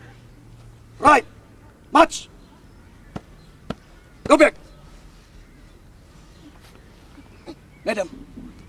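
A man speaks loudly in short, sharp bursts, close by.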